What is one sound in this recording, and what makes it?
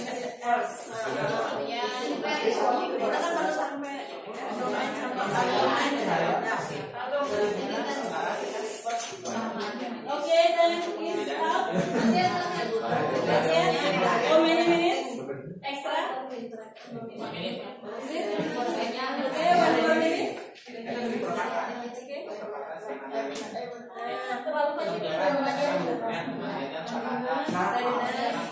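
Many women and men talk at once in small groups, in a room that echoes a little.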